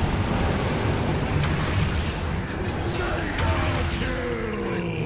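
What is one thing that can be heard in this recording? Game characters clash with sharp hits.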